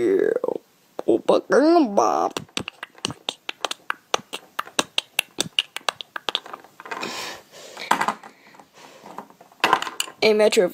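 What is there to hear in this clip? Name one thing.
A small plastic toy taps quickly and lightly against a hard surface.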